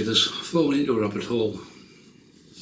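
An older man speaks calmly close by.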